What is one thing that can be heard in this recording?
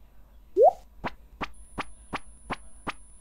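Soft footsteps tap quickly and evenly.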